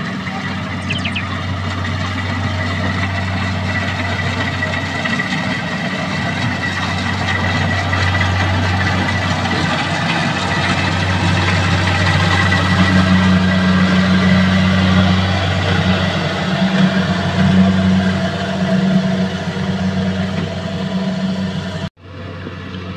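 A combine harvester's engine rumbles steadily close by.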